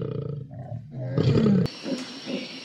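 A lion growls.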